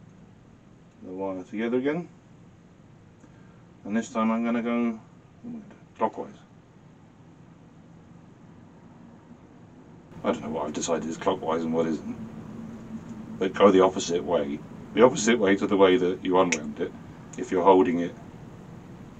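A middle-aged man talks calmly close by, in short bursts with pauses.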